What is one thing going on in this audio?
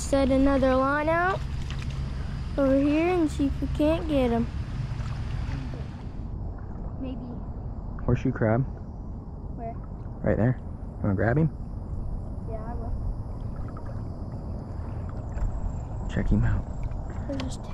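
Water splashes and sloshes around wading legs.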